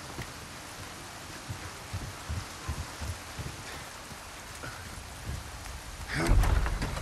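Rain patters steadily all around.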